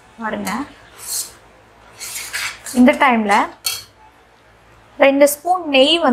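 A metal spatula scrapes and stirs in a metal pan.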